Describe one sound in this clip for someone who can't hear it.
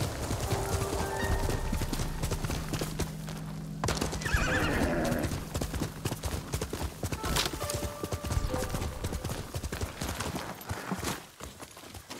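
A horse gallops with quick, heavy hoofbeats on soft ground.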